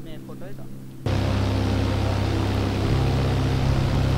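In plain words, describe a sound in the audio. A small propeller aircraft engine drones steadily.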